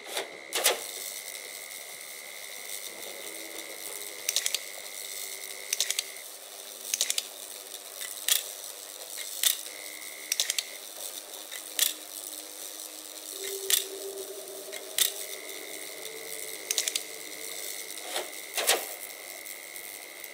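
Electricity crackles in short sparking bursts.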